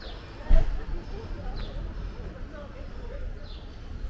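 Footsteps of a woman walking pass close by on pavement.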